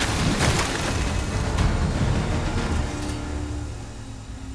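Rocks crash and shatter with a loud rumble.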